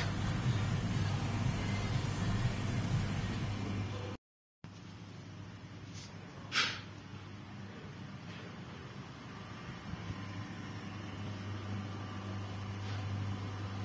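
A ventilation fan hums steadily.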